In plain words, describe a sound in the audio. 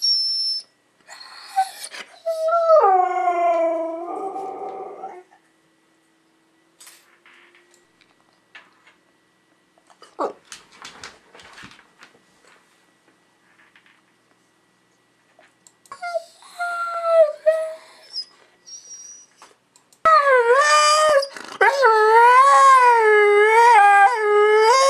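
A dog howls and yodels up close in long, wavering cries.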